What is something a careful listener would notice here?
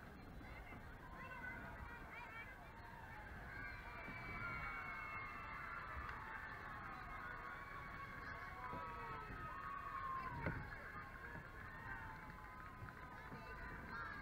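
Young girls shout and cheer from a distance outdoors.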